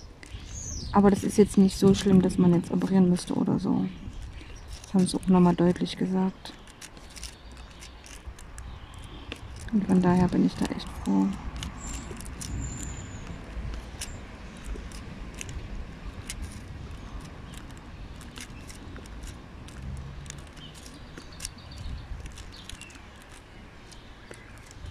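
A small plastic pen taps and clicks lightly on beads, again and again.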